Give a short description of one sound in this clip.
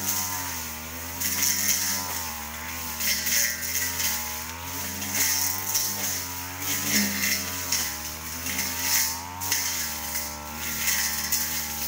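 A string trimmer slashes through grass and weeds.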